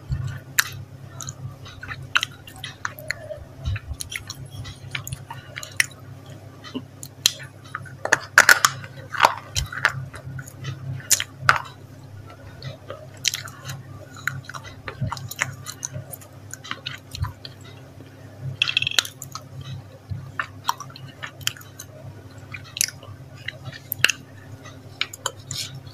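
A woman smacks her lips close to a microphone.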